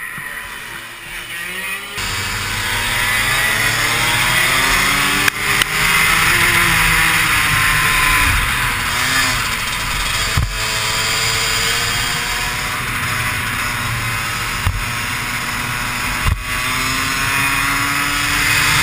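A kart engine revs loudly up close, rising and falling as it speeds up and slows down.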